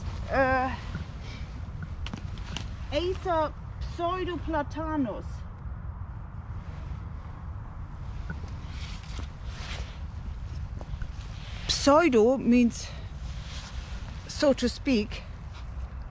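An older woman speaks calmly and close by.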